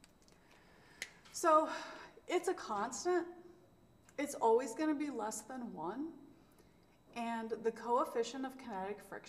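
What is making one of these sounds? A woman speaks calmly and clearly into a close microphone, as if explaining.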